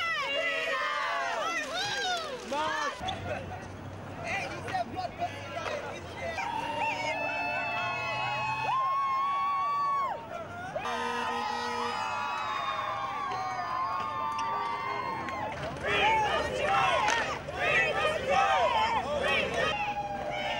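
A crowd of young women shouts and chants outdoors.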